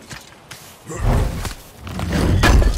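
Heavy thuds sound close by.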